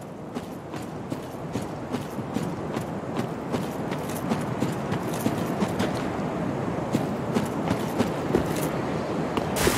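Armoured footsteps clank steadily on stony ground.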